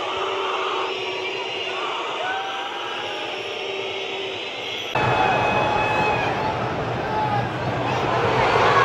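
A large stadium crowd chants and roars outdoors.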